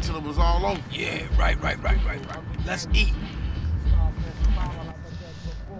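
A second man answers with quick, casual replies.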